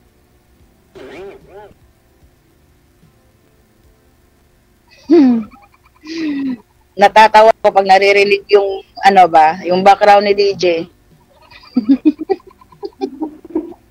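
A woman talks with animation over an online call.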